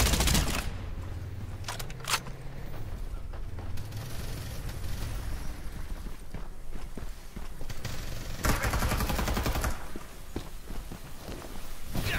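Footsteps thud on dry ground.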